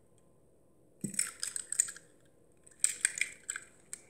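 Small plastic toy cars click and rattle as they are handled.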